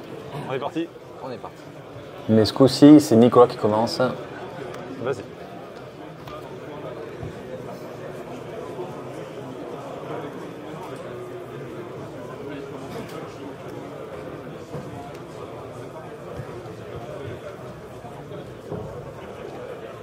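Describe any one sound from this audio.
Playing cards are shuffled and riffled in hands.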